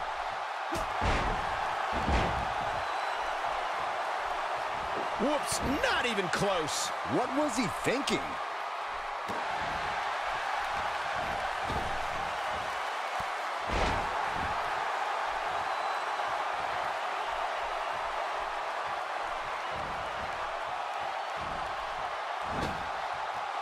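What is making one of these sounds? Heavy bodies slam onto a wrestling mat with dull thuds.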